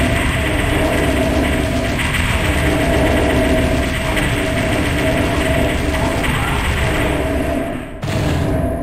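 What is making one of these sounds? A plasma gun fires a rapid stream of buzzing, crackling shots.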